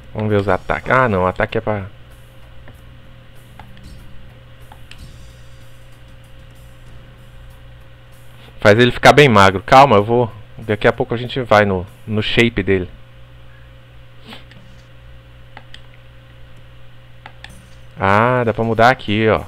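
Short menu clicks sound as options are chosen.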